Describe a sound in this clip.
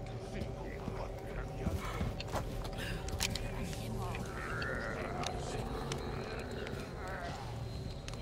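A torch fire crackles nearby.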